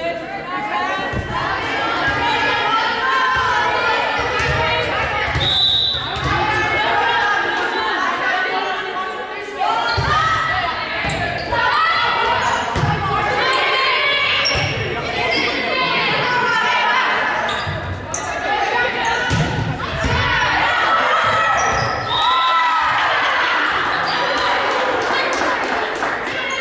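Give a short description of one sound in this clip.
Young women call out and chatter loudly, echoing in a large hall.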